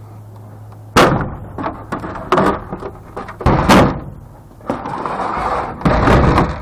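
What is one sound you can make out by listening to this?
A hollow plastic casing clatters loudly as it is pulled off.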